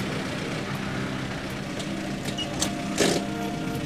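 A car rolls slowly to a stop.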